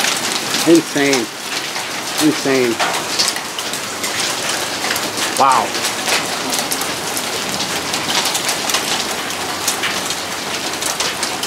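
Heavy rain and hail patter steadily on the ground and a roof outdoors.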